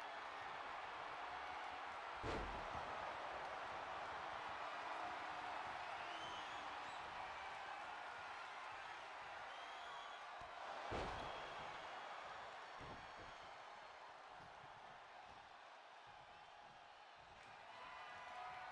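A large crowd cheers and roars steadily in an arena.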